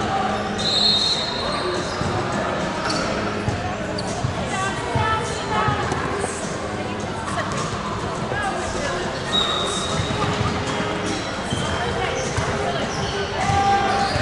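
Young women talk casually close by in a large echoing hall.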